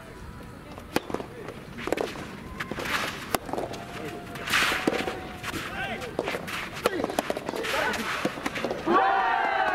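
Rackets strike a ball back and forth outdoors.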